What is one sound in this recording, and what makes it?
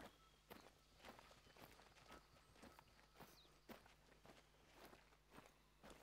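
Footsteps crunch steadily through dry leaves and undergrowth.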